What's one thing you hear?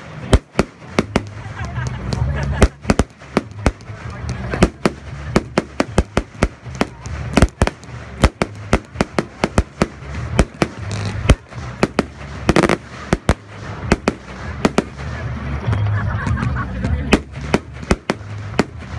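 Fireworks burst with sharp, rapid bangs and crackles overhead.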